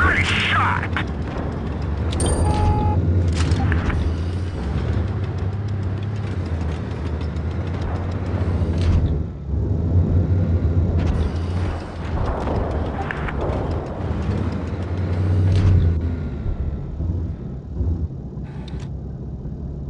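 Tank guns fire with loud booming blasts.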